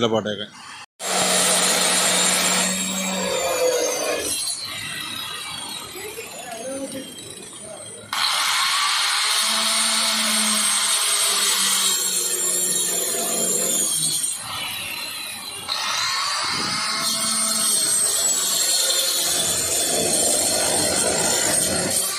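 An electric grinder whines as it cuts into a plastic drum.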